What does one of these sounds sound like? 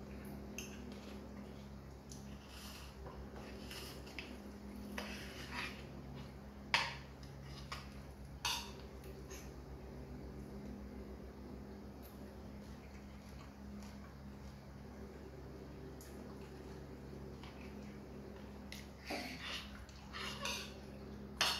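A knife and fork scrape and clink against a plate.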